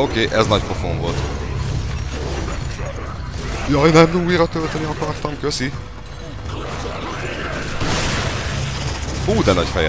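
A large creature growls and roars.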